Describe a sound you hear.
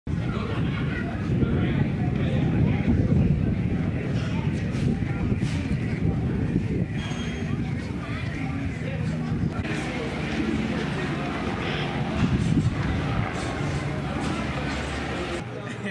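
A large flag flaps in the wind.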